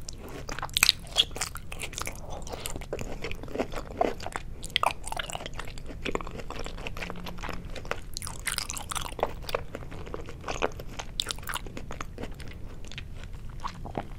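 A woman chews soft food wetly and close to a microphone.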